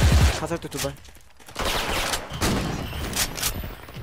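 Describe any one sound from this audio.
A video game assault rifle is reloaded with metallic clicks.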